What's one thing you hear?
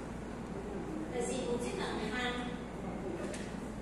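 A man speaks in a lecturing manner, some distance off in an echoing room.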